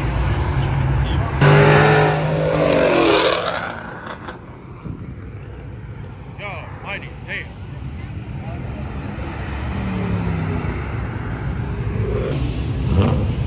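Traffic rushes by on a busy road outdoors.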